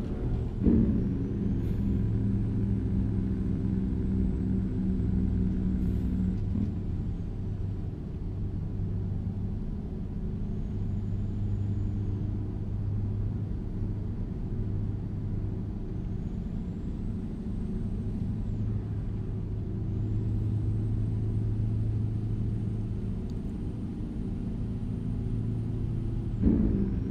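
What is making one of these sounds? Tyres roll on an asphalt road.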